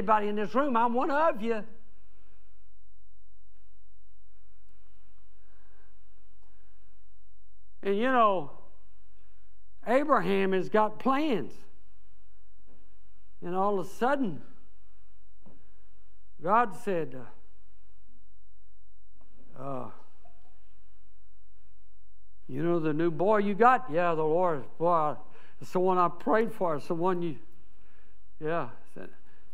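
An elderly man preaches with emphasis into a microphone, in bursts with long pauses.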